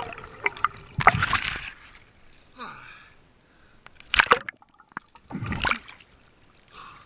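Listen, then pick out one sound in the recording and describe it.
Water splashes and sloshes at the surface.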